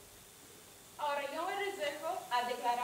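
A woman speaks with animation on a stage, heard from a distance in a hall.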